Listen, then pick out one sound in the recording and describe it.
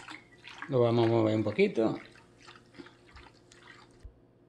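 Water sloshes softly in a plastic bucket.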